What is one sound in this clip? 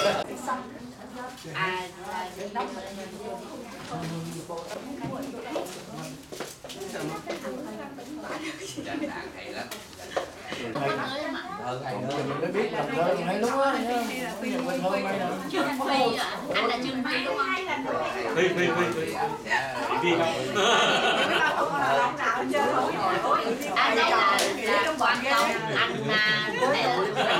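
Many people chatter throughout an indoor room.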